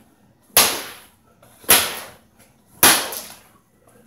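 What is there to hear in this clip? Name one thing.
A plastic bottle thumps down hard on a surface several times.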